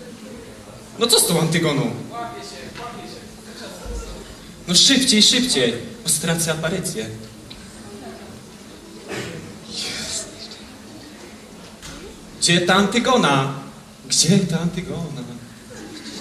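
A young man speaks loudly and with animation in a large echoing hall.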